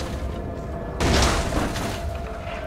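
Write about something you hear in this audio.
A metal mesh door is kicked open with a crash.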